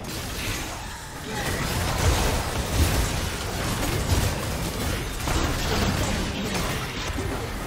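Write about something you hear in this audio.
Magic blasts and clashing weapon sounds ring out in a fast video game battle.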